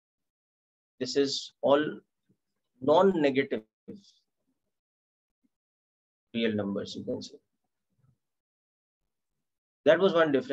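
A man explains calmly in short phrases, heard close through a microphone.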